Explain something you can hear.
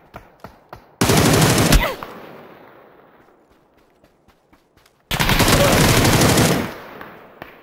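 A rifle fires loud rapid bursts of gunshots.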